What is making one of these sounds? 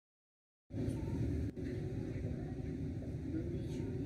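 Train doors slide open.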